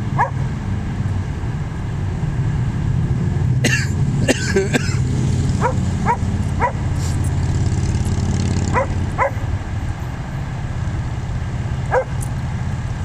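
Dogs give short, high yelps and whines while playing nearby.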